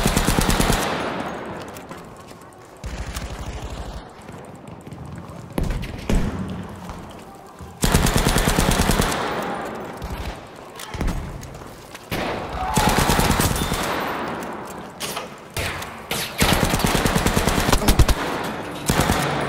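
Rapid gunfire rattles in bursts inside a large echoing hall.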